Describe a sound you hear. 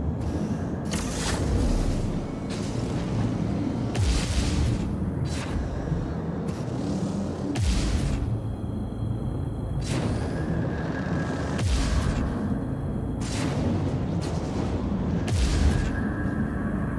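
Rushing whooshes sweep past again and again.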